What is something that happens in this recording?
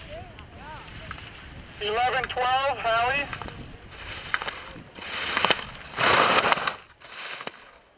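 Skis scrape and hiss across hard snow.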